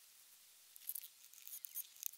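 A brush dabs and scrapes in a small cup.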